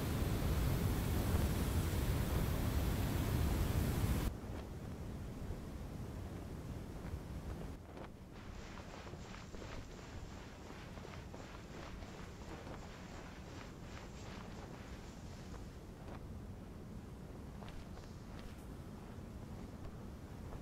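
Wind blows steadily across open sand.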